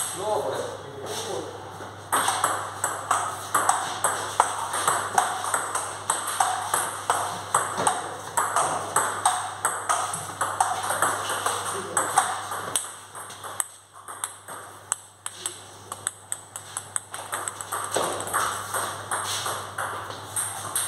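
Ping-pong balls click rapidly on paddles and tables, echoing slightly.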